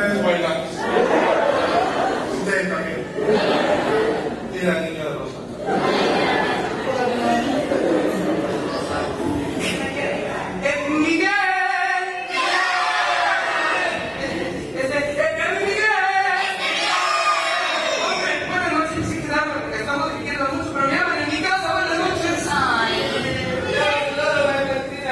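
A group of men and women sing together.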